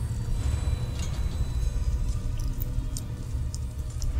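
A metal ball rolls along a metal track.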